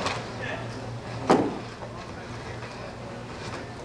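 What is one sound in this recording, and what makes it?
A body thuds onto the floor.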